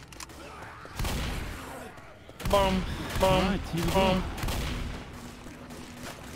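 A shotgun fires several times in a row.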